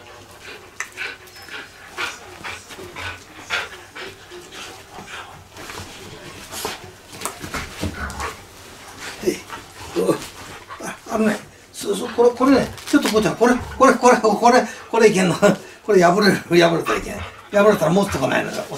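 Bedding and a cushion rustle and thump.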